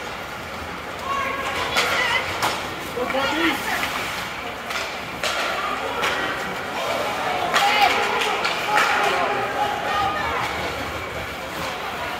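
A crowd of spectators shouts and cheers in a large echoing rink.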